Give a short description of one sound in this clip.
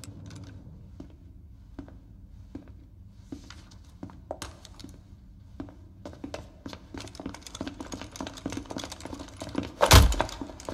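Footsteps click on a hard floor in an echoing hall.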